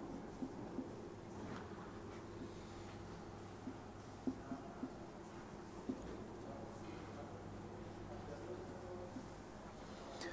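A marker taps and scrapes on a whiteboard.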